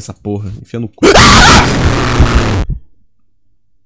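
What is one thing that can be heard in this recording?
A game character lets out a loud, harsh scream.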